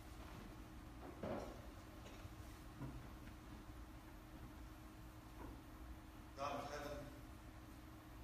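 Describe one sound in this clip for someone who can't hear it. A man speaks in a large echoing hall, heard at a distance.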